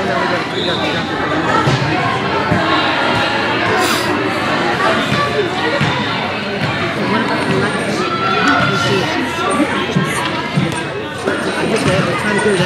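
Hockey sticks clack against a ball now and then.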